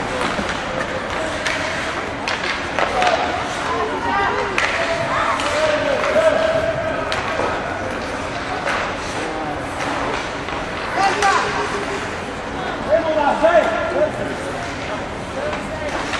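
Hockey sticks clack against the puck and each other.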